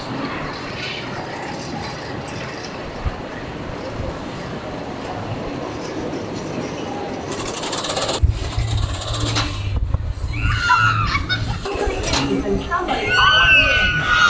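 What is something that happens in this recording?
Riders scream on a thrill ride far off.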